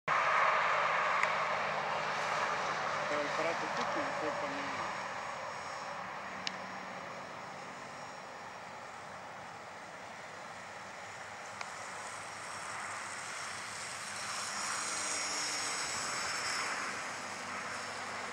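A small propeller plane drones overhead, its engine growing louder as it passes close and then fading.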